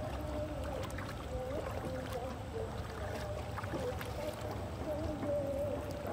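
Water laps gently against a small wooden boat.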